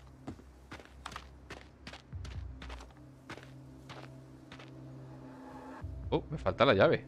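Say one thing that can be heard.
Footsteps crunch steadily on dirt.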